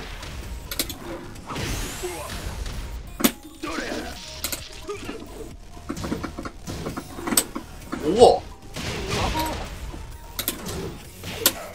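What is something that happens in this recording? Punches and kicks land with sharp thuds and smacks.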